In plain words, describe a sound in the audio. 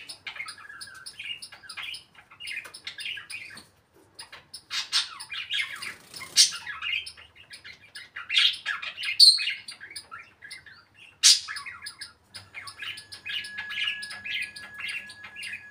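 A parrot chirps, whistles and squawks close by.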